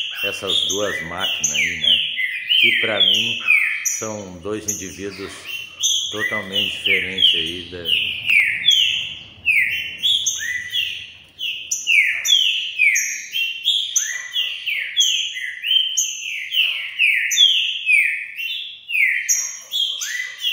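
Caged songbirds sing loudly, with rapid, repeated falling whistles.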